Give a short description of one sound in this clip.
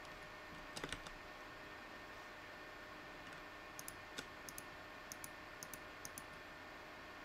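A computer fan whirs steadily.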